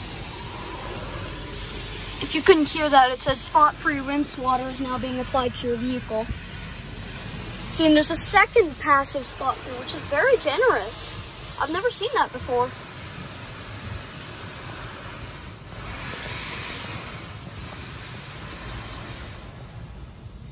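Water sprays against a car's windows.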